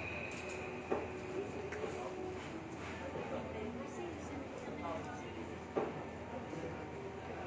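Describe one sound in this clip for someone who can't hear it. Young women talk casually nearby.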